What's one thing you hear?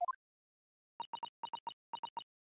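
Short electronic blips sound in quick succession.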